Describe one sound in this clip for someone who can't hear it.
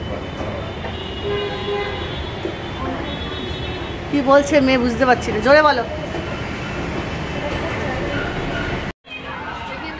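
An escalator hums steadily as it runs.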